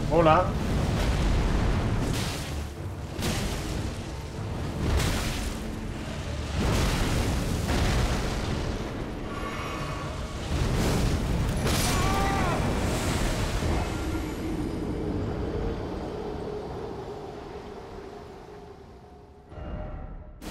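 Weapons clash and blasts boom in a loud fight.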